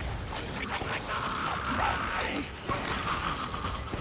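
A fire burns with a crackling roar.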